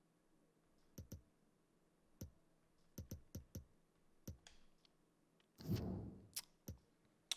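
Short menu clicks tick at an irregular pace.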